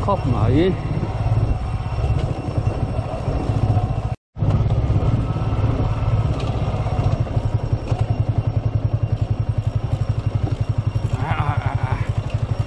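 A motorcycle engine putters steadily at low speed close by.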